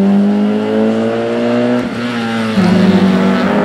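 A small hatchback rally car accelerates hard through a bend, its engine revving high.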